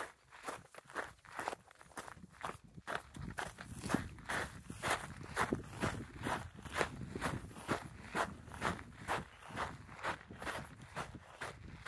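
Footsteps crunch on a gravelly dirt track.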